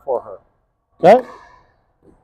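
A paddle strikes a plastic ball with a sharp pop.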